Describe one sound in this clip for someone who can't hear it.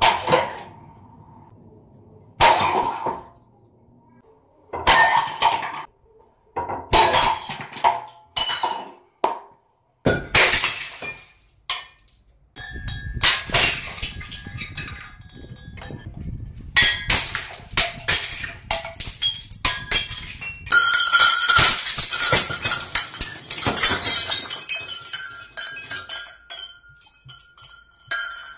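Glass shards scatter and tinkle across a concrete floor.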